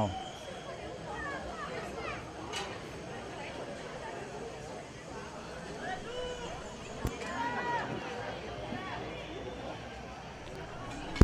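Young women shout faintly across an open outdoor field.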